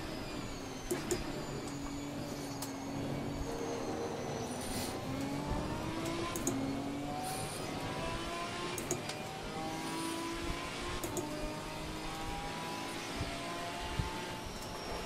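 A race car engine roars and revs up through the gears.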